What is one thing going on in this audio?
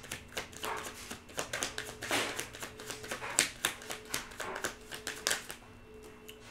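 Cards shuffle and riffle in a woman's hands.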